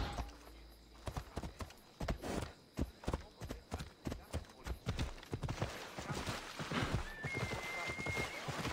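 Horse hooves clop rhythmically on hard ground.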